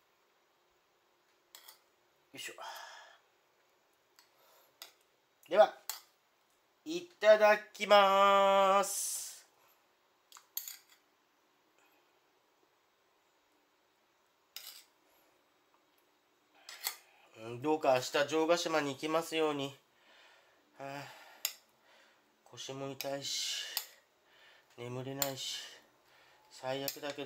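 A metal spoon and fork clink and scrape against a ceramic bowl while mixing soft food.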